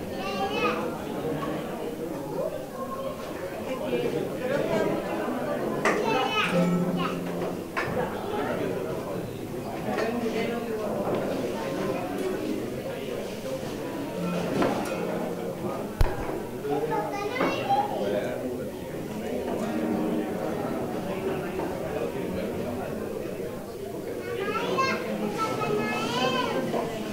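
A crowd of people chatter and talk loudly.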